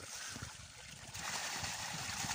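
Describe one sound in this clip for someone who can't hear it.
Water pours and splashes from a tub into a pond.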